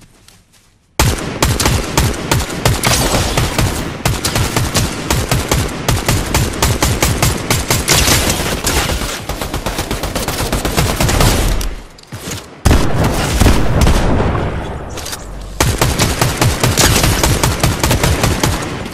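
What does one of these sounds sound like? A rifle fires repeated shots.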